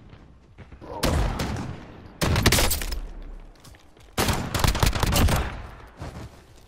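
A shotgun fires several loud, booming blasts.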